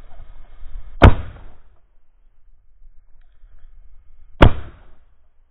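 A shotgun fires twice, loud and close, outdoors.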